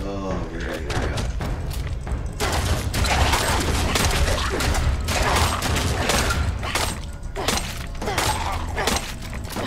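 Heavy melee blows thud and smack against a creature, again and again.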